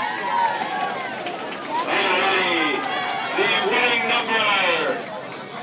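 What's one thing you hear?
A marching band plays brass instruments loudly.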